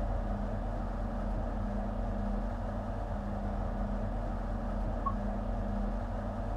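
A train engine hums steadily at idle.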